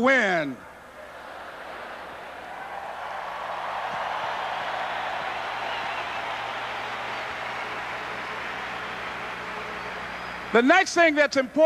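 A huge crowd cheers and applauds.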